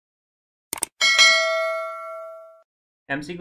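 A small bell rings with a bright chime and fades.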